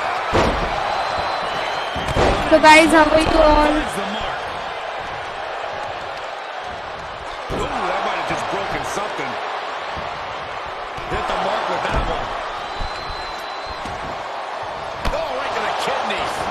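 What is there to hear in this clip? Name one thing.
A large crowd cheers and roars steadily in an echoing arena.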